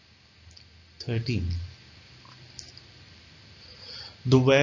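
A young man speaks calmly into a close microphone, with short pauses.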